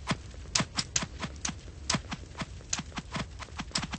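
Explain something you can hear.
A sword strikes with sharp hits.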